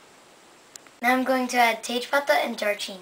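A young girl speaks clearly close by.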